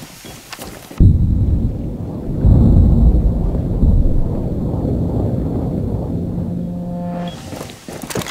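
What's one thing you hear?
A ringing, muffled rumble follows the blast and slowly fades.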